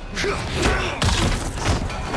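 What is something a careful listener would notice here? A heavy kick thuds into a body against a stone wall.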